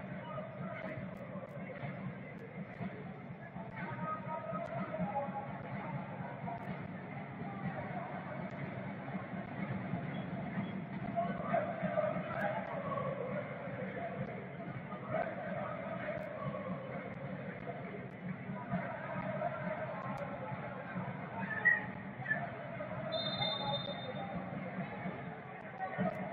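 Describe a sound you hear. A large crowd murmurs and chants steadily in a big open stadium.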